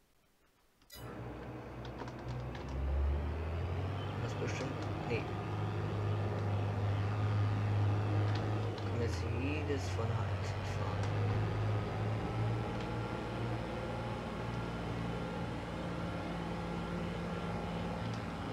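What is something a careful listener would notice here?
A combine harvester's engine rumbles steadily as the harvester drives along.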